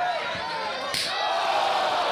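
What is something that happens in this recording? A loud slap of a hand striking bare skin rings out once.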